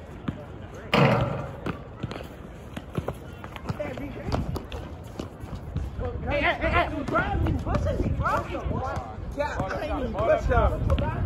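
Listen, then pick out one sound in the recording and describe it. Young men shout and talk to each other outdoors.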